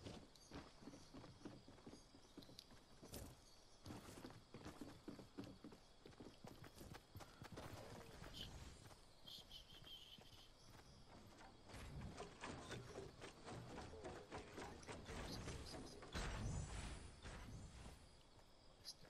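Footsteps thud quickly across wooden ramps and grass.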